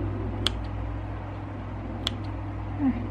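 Small scissors snip thread with a light click.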